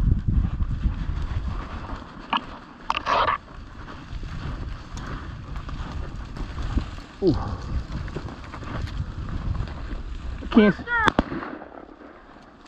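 Wind rumbles outdoors against the microphone.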